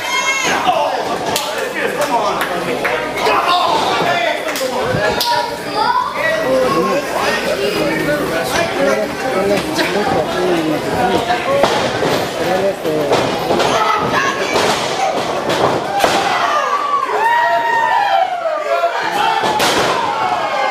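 Wrestlers thud heavily onto a mat.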